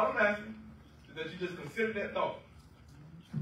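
A man speaks into a microphone in an echoing room.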